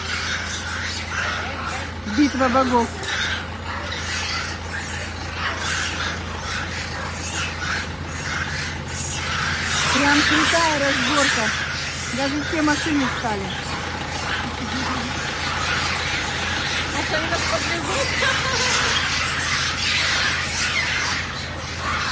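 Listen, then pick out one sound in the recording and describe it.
Motor scooters buzz past on the road.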